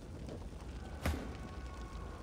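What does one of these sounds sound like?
A sharp magical impact bursts loudly.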